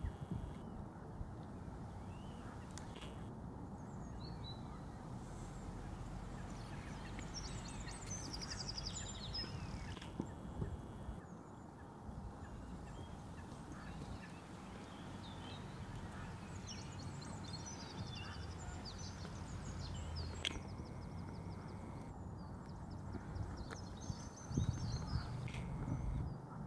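A horse trots with soft, muffled hoofbeats on sand.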